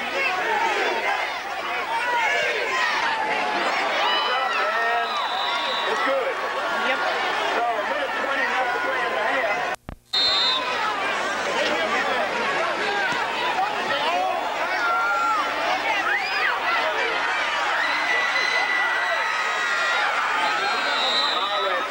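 A large crowd cheers and shouts loudly outdoors.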